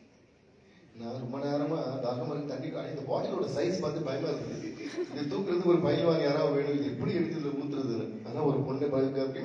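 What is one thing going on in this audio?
A young man speaks into a microphone over loudspeakers in a large echoing hall.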